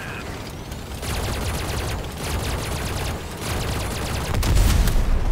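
A mounted gun fires in rapid bursts.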